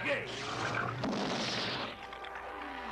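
Thunder cracks loudly and rumbles.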